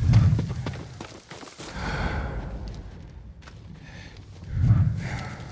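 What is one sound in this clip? Footsteps crunch through dry fallen leaves.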